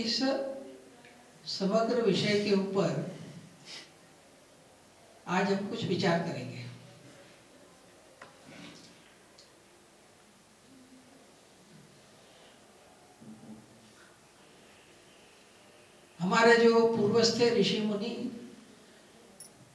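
An elderly man speaks calmly into a microphone, in short bursts with pauses.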